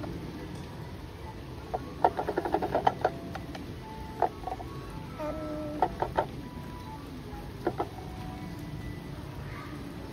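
A child turns a metal handle that clicks and scrapes against a brass dial.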